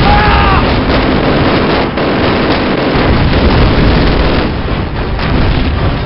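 Explosions boom nearby.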